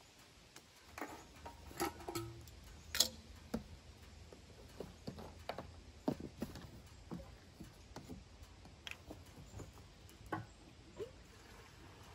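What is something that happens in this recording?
A plastic fuel can knocks and clatters against metal.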